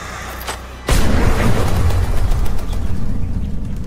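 A flock of birds flutters its wings overhead.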